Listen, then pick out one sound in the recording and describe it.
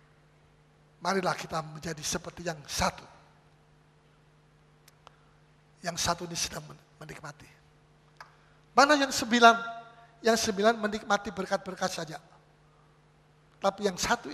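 A middle-aged man preaches with animation into a microphone, in bursts between pauses.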